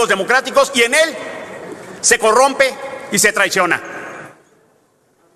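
A middle-aged man speaks forcefully into a microphone in an echoing hall.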